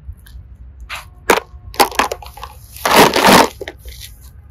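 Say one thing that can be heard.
Plastic toys clatter together in a basket.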